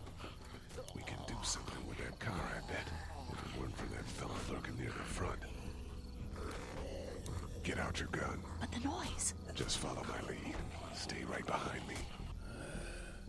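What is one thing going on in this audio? A man speaks quietly and tensely, close by.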